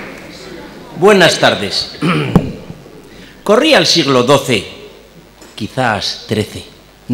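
A man speaks through a microphone in a large hall, with pauses.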